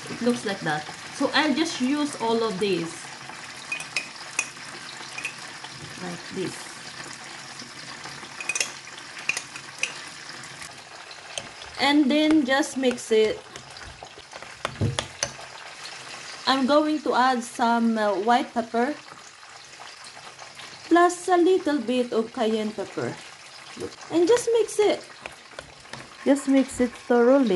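A young woman talks calmly and cheerfully close by.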